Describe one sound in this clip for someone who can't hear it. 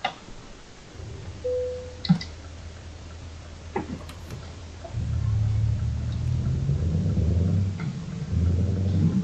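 A truck engine hums steadily, rising louder as the truck drives on.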